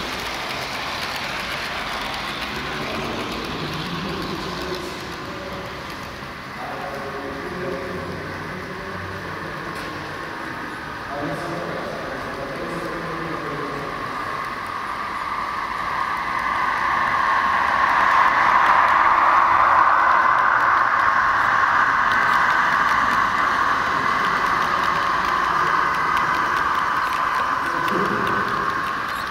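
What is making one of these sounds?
A model train whirs along its track, growing louder as it passes close by.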